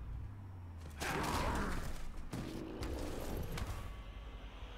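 A heavy crunching blow lands, with a loud crash.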